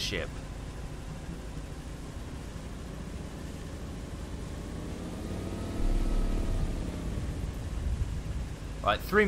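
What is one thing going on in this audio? Water churns and splashes behind a moving boat.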